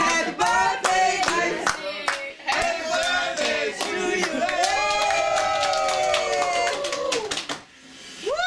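People clap their hands in rhythm.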